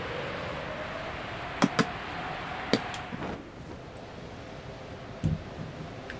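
Wind whistles steadily in a video game.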